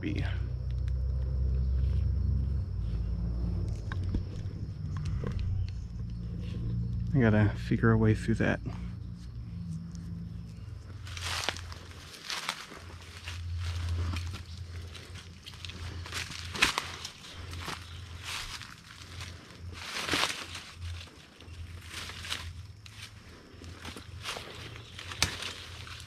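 Wind rustles through the leaves of the trees outdoors.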